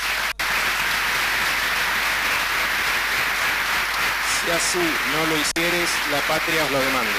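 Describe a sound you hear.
A crowd chatters and murmurs in a busy room.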